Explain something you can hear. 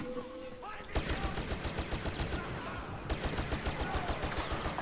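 A blaster rifle fires rapid shots.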